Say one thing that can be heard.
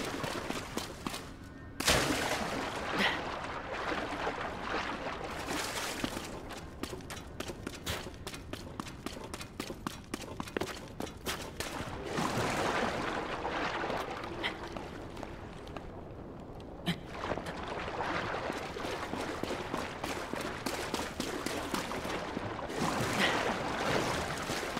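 Water splashes and rushes as a board slides through an echoing tunnel.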